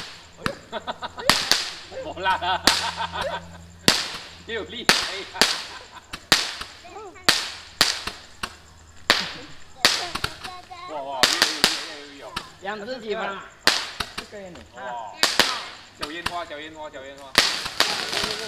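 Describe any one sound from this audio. Firecrackers bang loudly outdoors, one after another.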